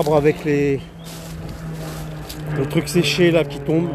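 Leaves rustle as a hand brushes through them.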